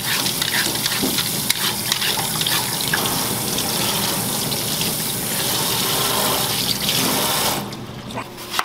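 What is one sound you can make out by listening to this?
Tap water runs and splashes onto a vegetable in a sink.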